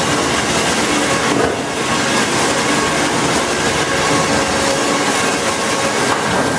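A sawmill machine rumbles and whines loudly.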